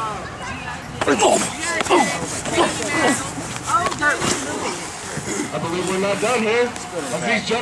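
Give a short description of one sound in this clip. A crowd of people shout and cheer loudly outdoors.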